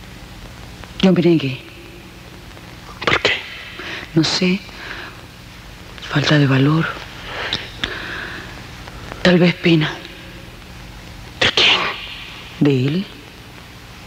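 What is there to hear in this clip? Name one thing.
A middle-aged woman speaks quietly and tensely, close by.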